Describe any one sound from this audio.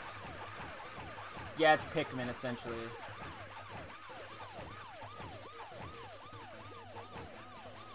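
Quick battle sound effects pop and swoosh.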